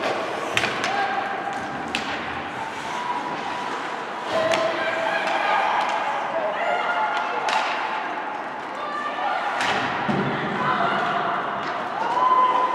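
Hockey sticks clack sharply against a puck.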